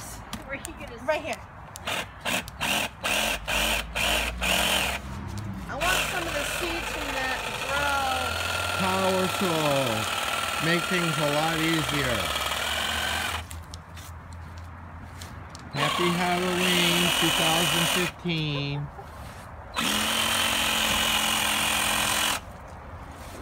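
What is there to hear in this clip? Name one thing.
A power tool whirs on and off in short bursts, its motor speeding up and slowing down.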